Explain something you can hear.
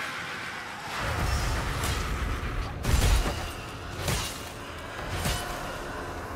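A heavy hammer swings and strikes with loud thuds.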